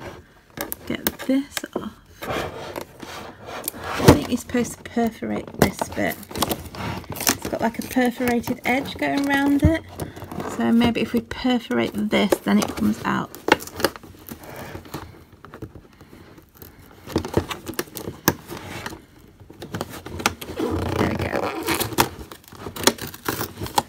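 Fingers rustle and scrape against stiff paper close by.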